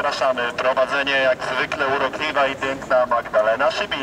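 A woman speaks into a microphone, close by.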